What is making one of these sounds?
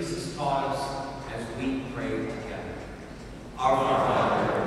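A man speaks at a microphone in a large echoing hall.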